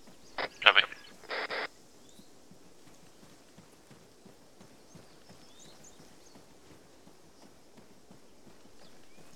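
Footsteps run through grass and undergrowth.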